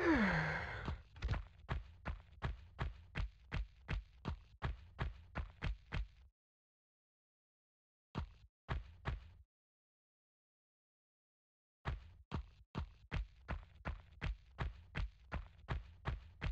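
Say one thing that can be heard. Quick footsteps run on a hard stone floor.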